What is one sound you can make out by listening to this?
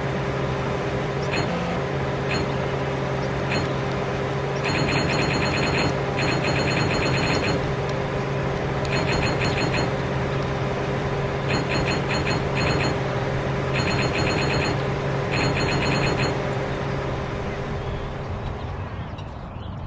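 A car engine hums steadily in a game.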